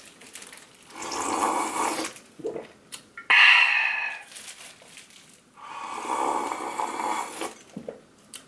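A young man slurps loudly up close.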